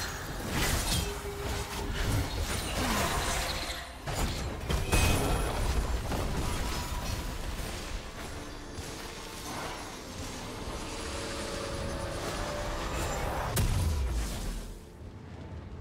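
Magic spell effects burst and crackle in a fast video game fight.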